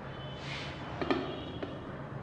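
A ruler taps against a board.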